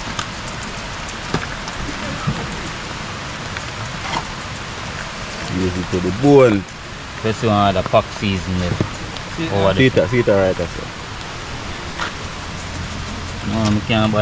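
Seasoning shakes from a plastic bottle onto raw chicken.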